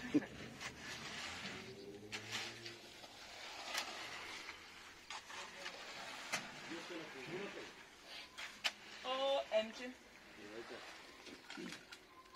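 A rake scrapes through wet concrete.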